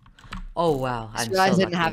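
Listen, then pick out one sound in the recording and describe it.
Blocks click softly as they are placed in a game.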